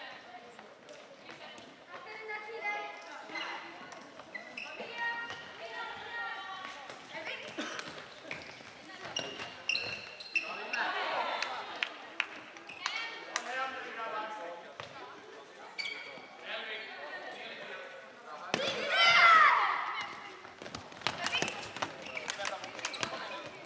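Young players shout and call out to each other in a large echoing hall.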